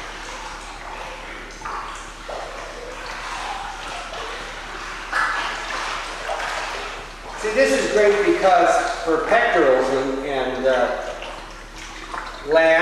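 Water splashes gently.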